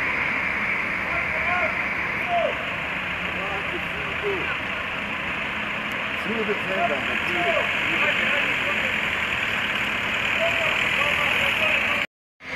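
Men talk to each other outdoors at a distance.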